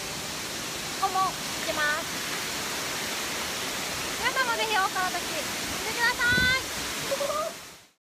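A young woman talks cheerfully and laughs close to the microphone.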